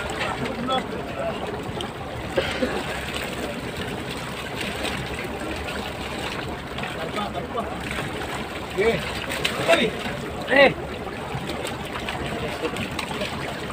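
Fish thrash and slap in a net.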